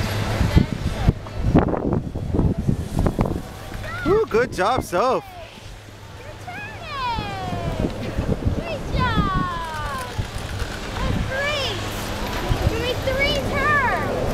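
A snowboard scrapes over snow.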